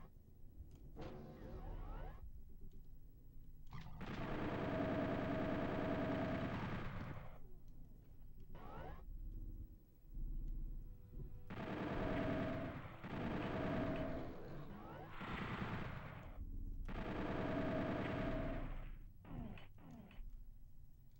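Game gunfire booms in short bursts.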